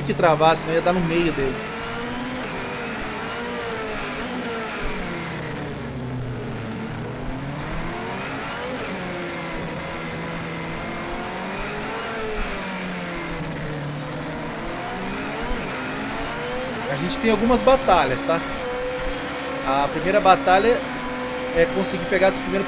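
A racing car engine revs up and down as gears change.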